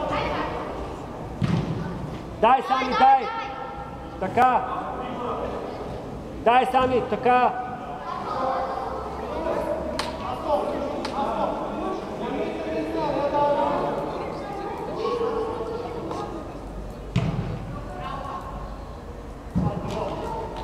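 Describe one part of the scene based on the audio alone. A ball is kicked with dull thuds.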